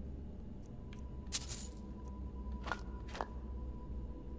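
Short soft clicks sound as items are flipped through one by one.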